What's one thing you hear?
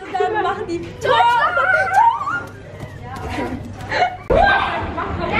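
Young girls talk and laugh excitedly close by.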